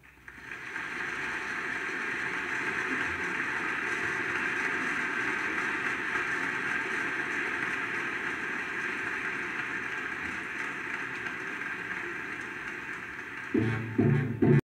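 A vinyl record plays on a turntable, with steady surface crackle and hiss.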